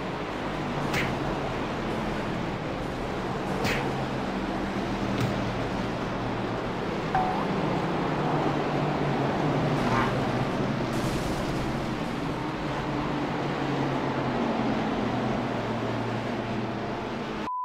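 A car crashes and tumbles with metallic bangs.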